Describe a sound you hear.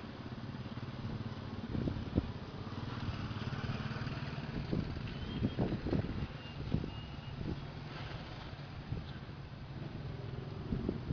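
Small step-through motorcycles putter at low speed around tight curves.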